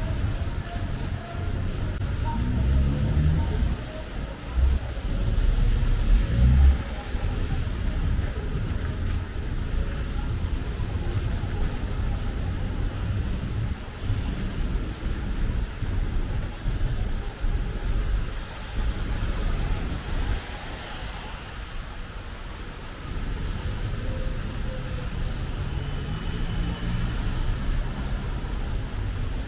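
City traffic hums and rumbles in the distance.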